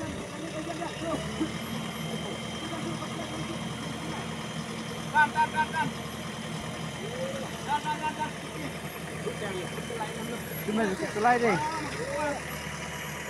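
A diesel engine idles steadily nearby.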